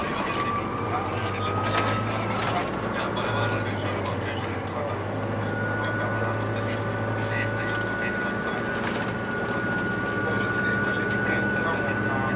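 The bus rattles and creaks as it drives along the road.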